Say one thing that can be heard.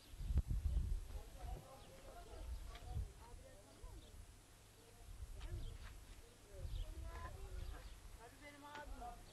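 A man and a woman talk quietly nearby.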